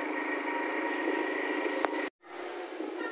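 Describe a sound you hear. A motorbike engine hums.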